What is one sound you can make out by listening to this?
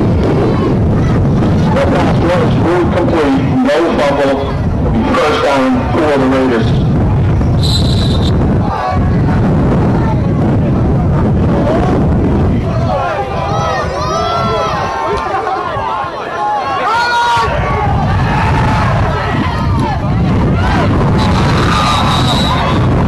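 A crowd murmurs and cheers outdoors in the stands.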